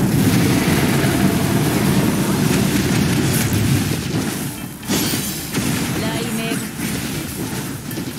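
Blades slash and clang against a large creature.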